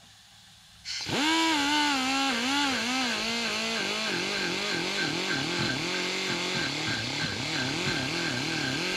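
A power drill whines steadily, its pitch wavering as it grinds metal.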